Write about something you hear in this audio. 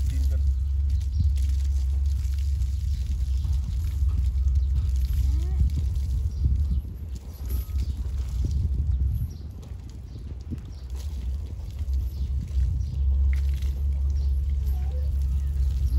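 Water gushes from a hose and splashes on wet ground.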